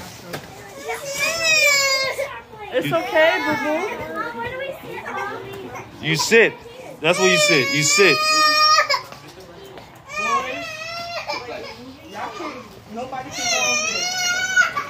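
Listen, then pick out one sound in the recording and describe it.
Young girls squeal and shout excitedly nearby.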